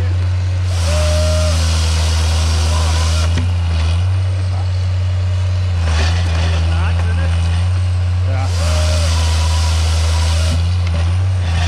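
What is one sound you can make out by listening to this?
Hydraulics whine loudly in bursts.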